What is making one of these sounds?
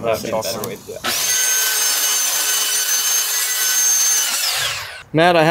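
A circular saw whines steadily as it cuts through a board, then winds down.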